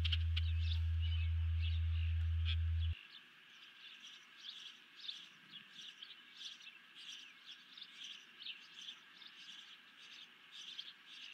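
An osprey gives short, high chirping calls again and again, outdoors.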